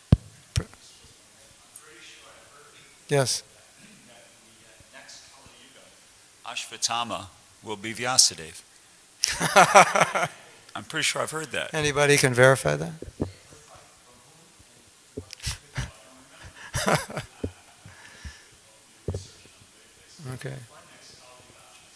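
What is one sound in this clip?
A man speaks calmly and intermittently into a microphone.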